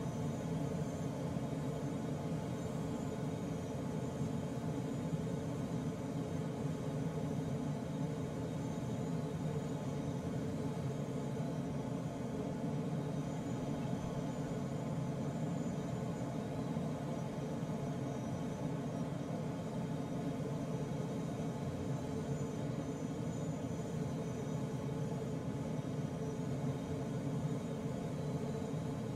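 Wind rushes steadily past a glider's canopy in flight.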